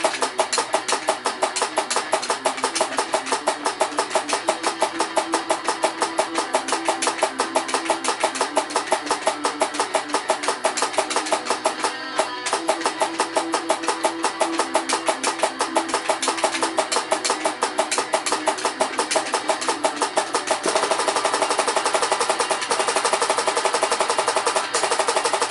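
Rock music with fast drums and electric guitars plays from a television's speaker.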